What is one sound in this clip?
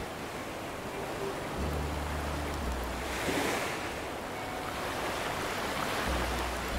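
Small waves wash gently onto a shore.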